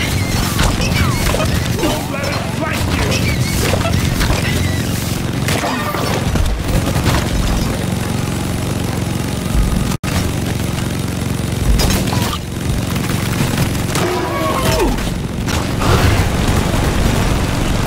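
A rapid-fire gun blasts continuously.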